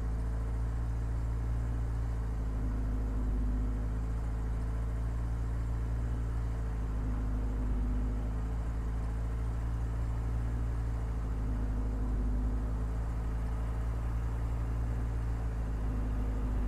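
A racing car engine hums steadily at low revs, rising and falling gently.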